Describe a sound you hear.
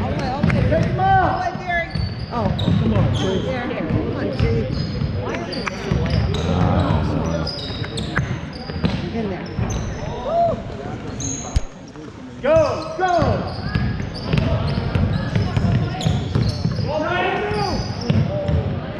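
Sneakers squeak sharply on a hardwood court, echoing in a large gym.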